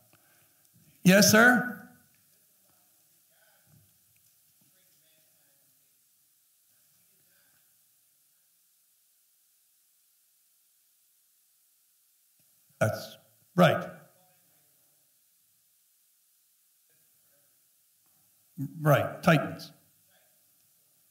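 A man speaks through a microphone in short, loud bursts with long pauses between them.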